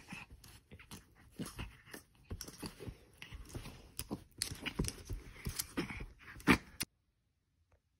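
A small dog scrabbles and rustles about on soft bedding, close by.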